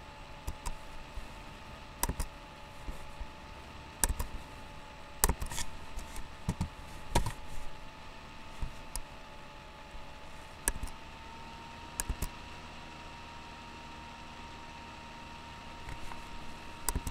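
A young man talks quietly and casually, close to a microphone.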